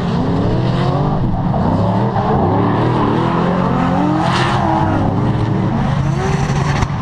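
Tyres screech on asphalt as a car drifts.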